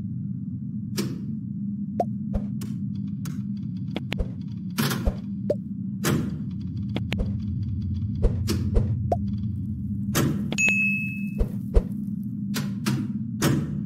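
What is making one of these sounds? Game menu sounds click and swish as options are selected.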